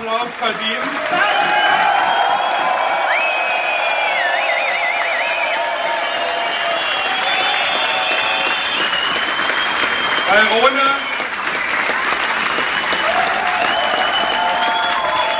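A large crowd cheers, shouts and whistles loudly.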